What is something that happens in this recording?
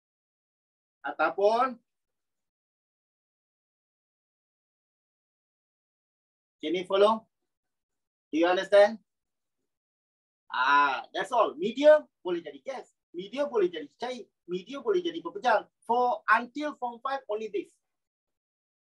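A middle-aged man speaks with animation into a close microphone, in bursts with long pauses.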